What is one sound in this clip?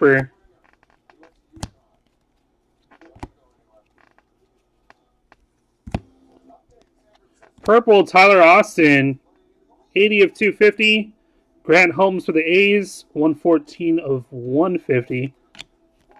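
Trading cards rustle and flick softly as they are shuffled by hand.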